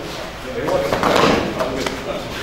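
A body thuds onto a padded floor.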